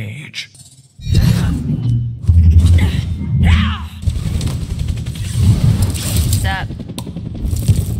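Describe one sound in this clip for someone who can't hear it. An energy whip cracks and whooshes through the air.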